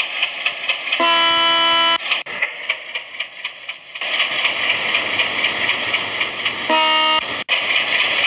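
A train horn blares loudly twice.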